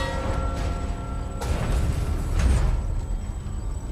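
A heavy metal gate creaks and clanks open.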